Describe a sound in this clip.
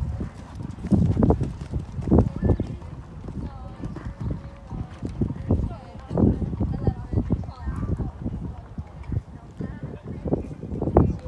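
A horse's hooves thud on soft sand at a canter.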